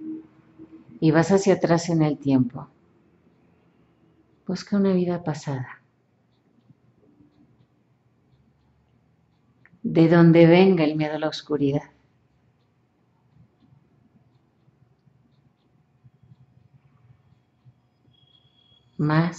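A woman speaks in short phrases with pauses between them.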